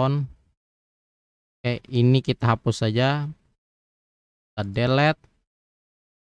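A young man speaks calmly into a close microphone, in short bursts.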